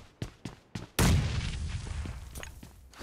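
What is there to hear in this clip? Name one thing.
A grenade explodes with a loud boom nearby.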